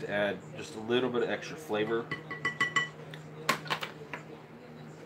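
A spoon scrapes and clinks in a bowl.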